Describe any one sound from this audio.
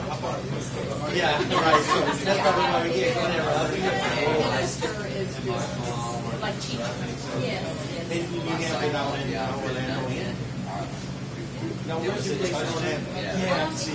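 A middle-aged woman talks with animation into a nearby microphone.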